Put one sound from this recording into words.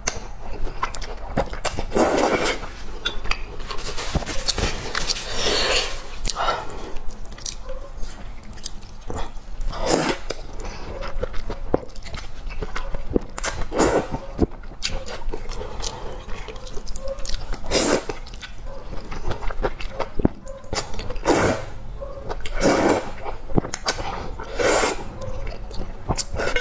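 A young woman chews wetly, close to a microphone.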